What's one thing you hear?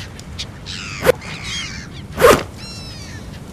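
Leaves rustle and tear as they are cut from a plant.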